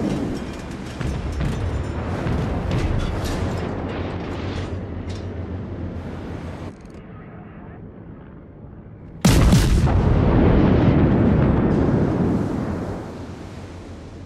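Shells splash into the water nearby.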